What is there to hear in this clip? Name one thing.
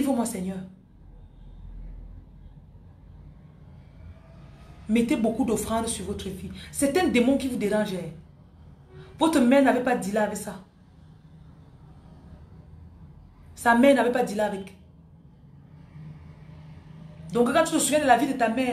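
A young woman speaks close to a microphone with animation, in short bursts with pauses.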